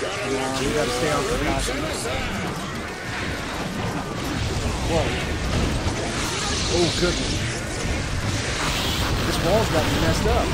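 Game fighters clash with punches and bursts of energy blasts.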